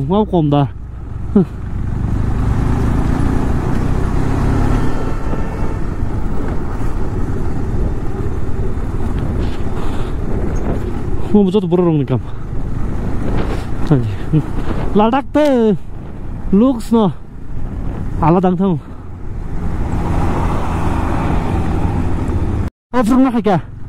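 Motorcycle tyres rumble over a cobbled road.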